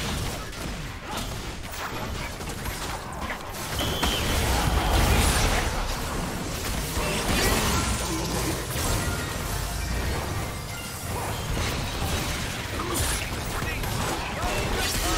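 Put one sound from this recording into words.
Magic blasts and fiery explosions crash and crackle during a game battle.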